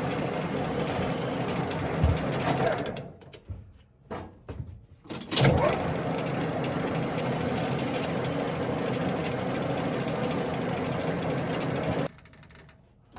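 An abrasive pad scrubs against a spinning metal part.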